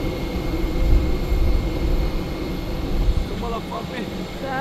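An electric bus hums as it drives slowly past.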